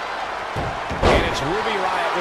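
A heavy body thuds onto a wrestling mat.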